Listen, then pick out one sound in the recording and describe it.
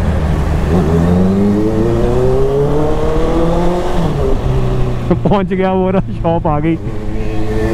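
A motorcycle engine hums and revs up and down while riding.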